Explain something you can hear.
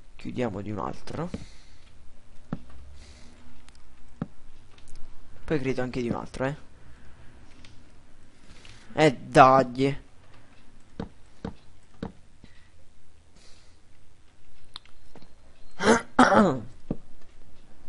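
Wooden blocks knock softly as they are placed one after another.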